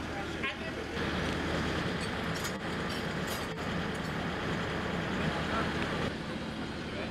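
Trams rumble along their tracks.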